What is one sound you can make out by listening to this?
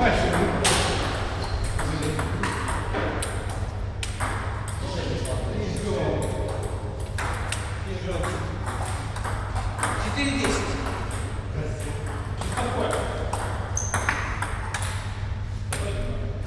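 Table tennis balls click rapidly on tables and paddles.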